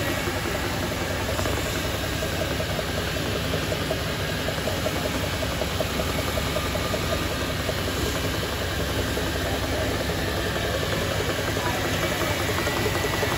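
An electric motor hums steadily.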